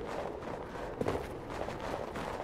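Footsteps crunch quickly across snow.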